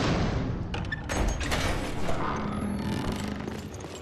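Heavy wooden doors creak open.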